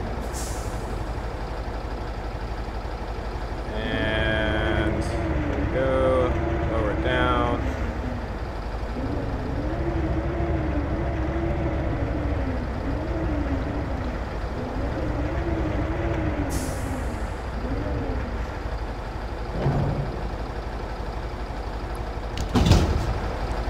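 A crane's engine rumbles steadily.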